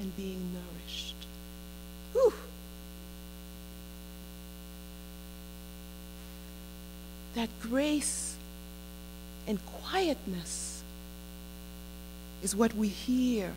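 A woman preaches into a microphone with animation, in pauses, in an echoing hall.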